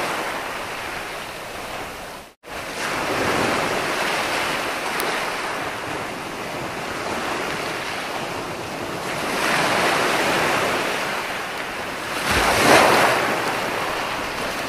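Foamy surf hisses as it washes up the beach.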